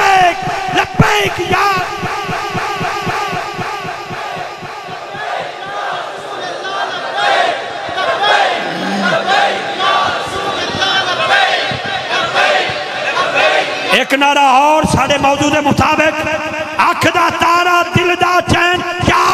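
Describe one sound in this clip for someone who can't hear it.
A large crowd of men chants along loudly.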